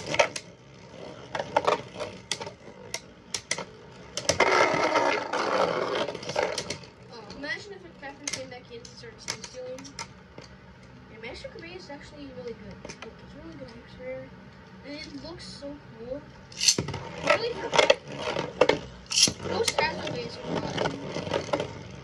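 Spinning tops clatter and knock against each other in a plastic arena.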